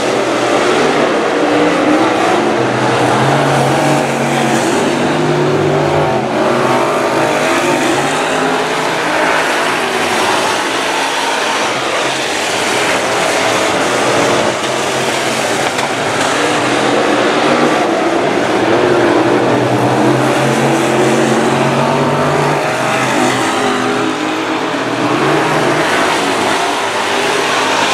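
Race car engines roar loudly.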